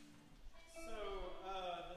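A small band starts to play.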